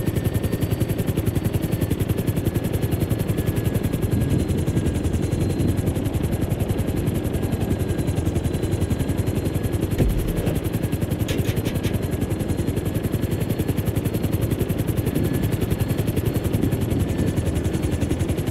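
A helicopter's rotor thumps in a steady, fast beat throughout.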